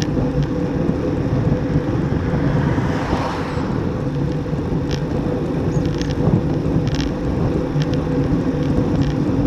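Wind rumbles and buffets steadily against a moving bicycle.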